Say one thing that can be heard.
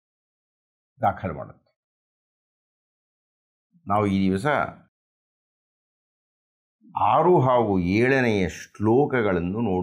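An elderly man speaks calmly and clearly into a close microphone, with pauses between phrases.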